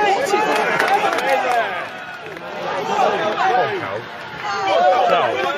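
A crowd of fans shouts and cheers loudly nearby, outdoors.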